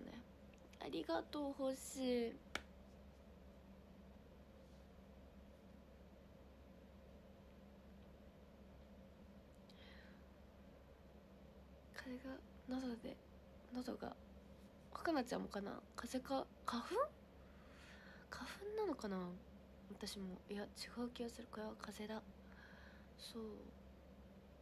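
A young woman speaks close to a microphone, in a soft and animated voice, with pauses.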